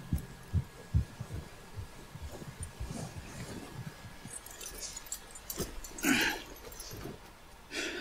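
Horses' hooves thud through deep snow at a walk.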